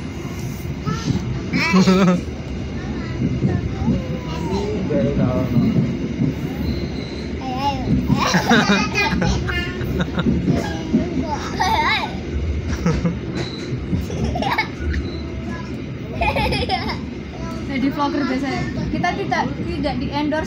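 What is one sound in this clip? A child talks close by.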